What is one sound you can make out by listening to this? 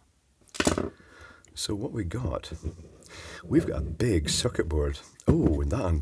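A plastic casing clicks and creaks as it is pried apart.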